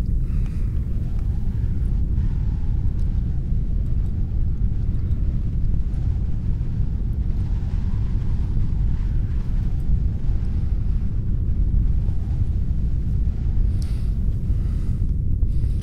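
A young woman talks quietly into a microphone.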